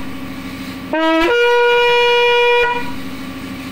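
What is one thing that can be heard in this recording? A horn is blown in a loud, steady, bright blast that rises at the start.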